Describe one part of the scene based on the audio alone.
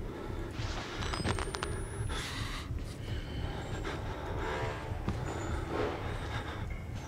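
A fist knocks on a door.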